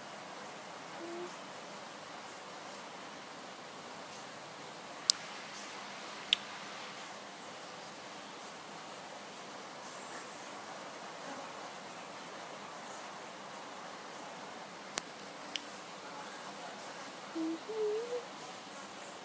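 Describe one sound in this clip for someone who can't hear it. A young woman speaks softly close to the microphone.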